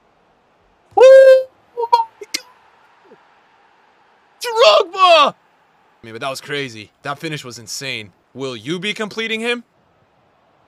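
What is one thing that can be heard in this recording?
A young man shouts excitedly into a microphone, then talks with animation.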